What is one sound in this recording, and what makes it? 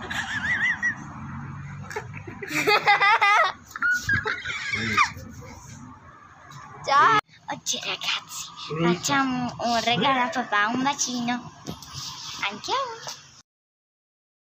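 A young girl speaks with animation close to the microphone.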